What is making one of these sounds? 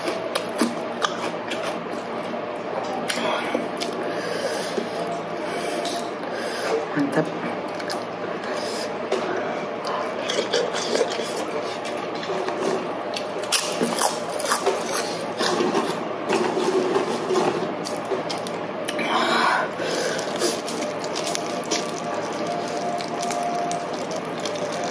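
A young woman chews and slurps food loudly, close up.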